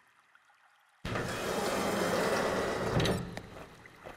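A metal elevator gate rattles and clanks open.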